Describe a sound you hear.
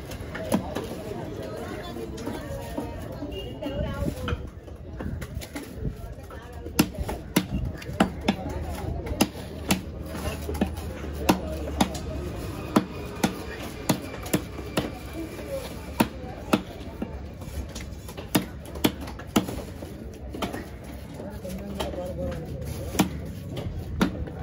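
A large knife chops through fish on a wooden block with sharp thuds.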